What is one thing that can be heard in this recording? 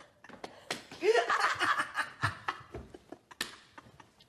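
A young man laughs loudly.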